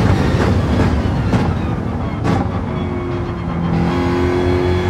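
A car engine drops in pitch and slows.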